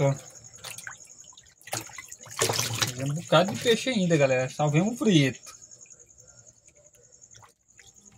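Water splashes as hands move fish in a basin.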